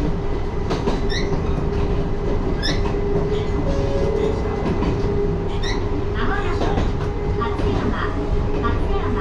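A train rumbles steadily along the rails.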